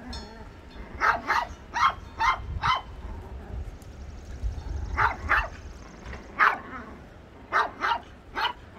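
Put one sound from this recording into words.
Puppies yelp and bark in short, high bursts.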